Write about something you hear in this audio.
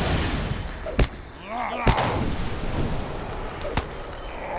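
A fiery spell bursts with a loud whoosh.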